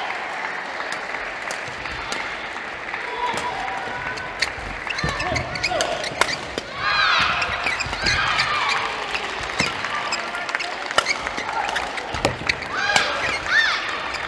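Rackets sharply smack a shuttlecock back and forth.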